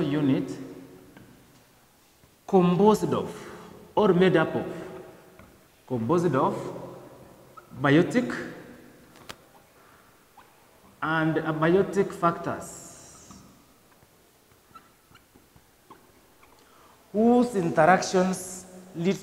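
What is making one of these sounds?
A man speaks in short phrases with pauses, in a room with some echo.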